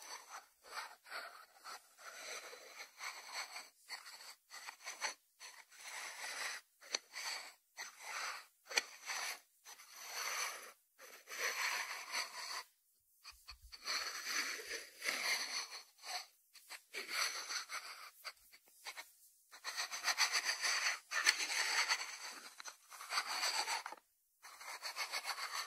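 Fingertips tap and scratch on a ceramic lid close up.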